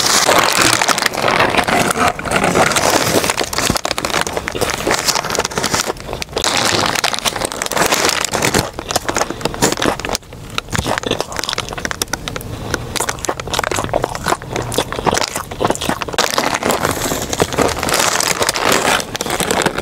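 A young woman crunches loudly into crispy fried food close to a microphone.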